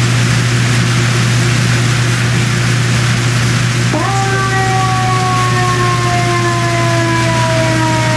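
A fire roars and crackles steadily.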